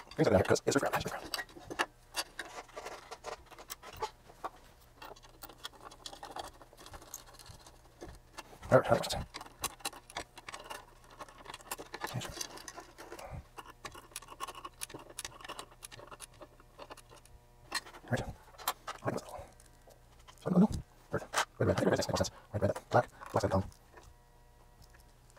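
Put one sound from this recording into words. Small metal tools click and scrape against a metal chassis.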